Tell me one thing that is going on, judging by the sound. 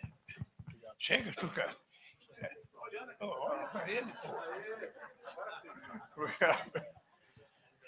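A man laughs and talks near a microphone.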